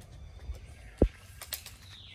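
A monkey climbs onto a metal door with a dull thud.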